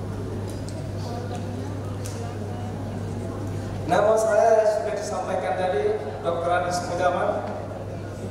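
An elderly man speaks calmly and formally through a microphone and loudspeakers.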